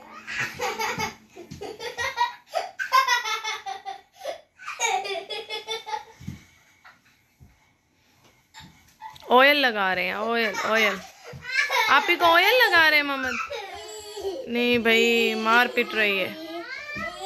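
A young boy chatters and giggles nearby.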